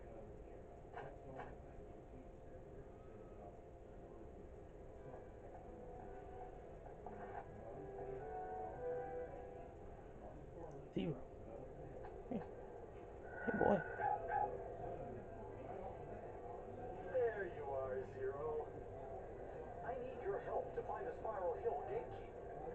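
Music plays softly through a television speaker.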